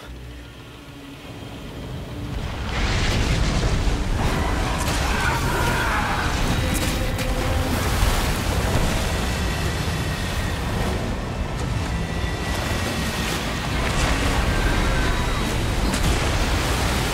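A boat's motor drones steadily.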